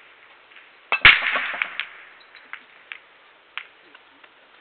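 A cue strikes a ball hard, and billiard balls scatter and clack against each other and the cushions.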